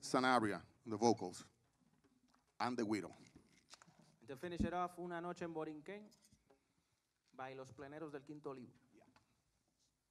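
A man speaks into a microphone in a calm, announcing voice, heard through loudspeakers in a large room.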